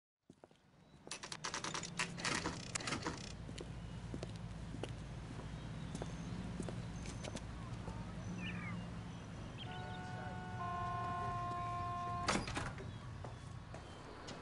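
City traffic hums in the distance.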